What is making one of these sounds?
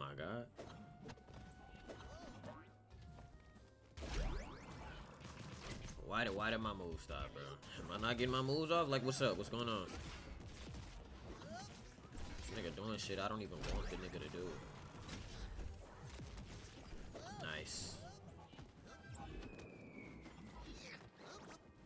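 Cartoon game sounds of hits and swooshes pop in quick succession.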